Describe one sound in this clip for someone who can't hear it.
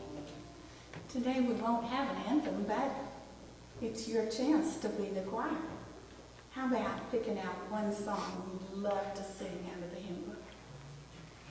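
A woman speaks with animation into a microphone in an echoing room.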